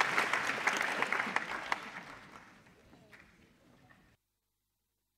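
A group of people applaud, and the clapping fades away.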